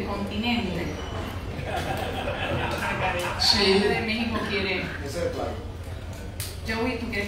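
A young woman speaks calmly into a microphone over a loudspeaker in an echoing room.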